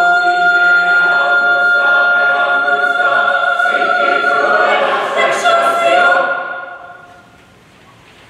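A large choir sings a sustained chord in a big echoing hall.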